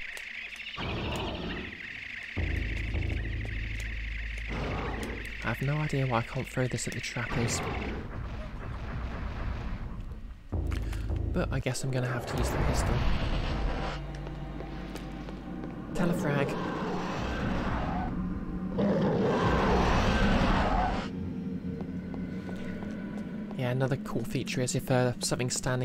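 Video game sound effects whoosh and rumble.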